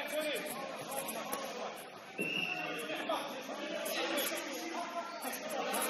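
Men's voices call out and chatter in a large echoing hall.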